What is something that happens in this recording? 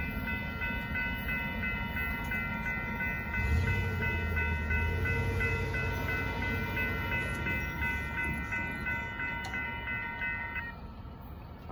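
A railroad crossing bell rings steadily and rapidly.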